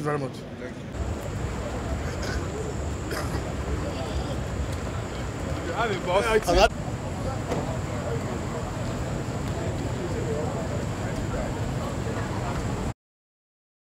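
A crowd murmurs outdoors at night.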